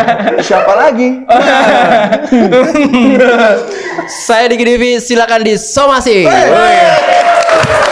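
Men laugh loudly close to a microphone.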